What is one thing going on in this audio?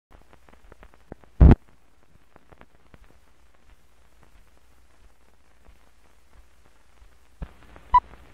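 Old film soundtrack crackles and pops with faint surface noise.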